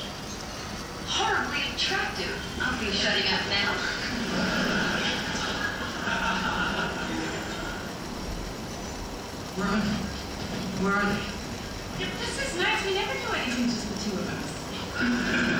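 Water bubbles and splashes steadily from an aquarium filter outlet.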